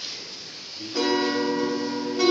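A bandura is plucked, ringing out in clear notes.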